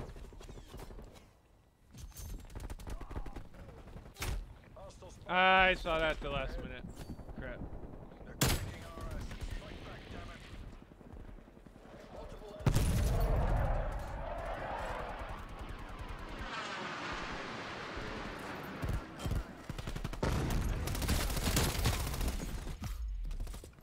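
Gunfire from a video game rattles in quick bursts.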